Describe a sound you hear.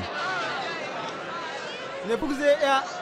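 A crowd of men murmurs and calls out together.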